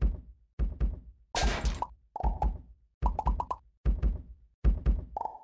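Dull thuds repeat steadily as a treasure chest is struck.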